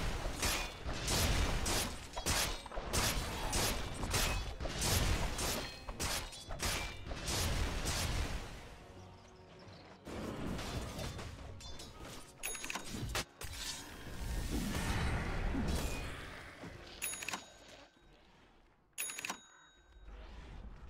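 Spell effects and weapon hits crash and clang in a game fight.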